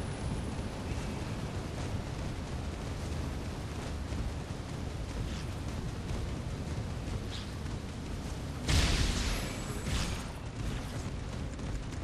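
Molten lava rumbles and roars steadily.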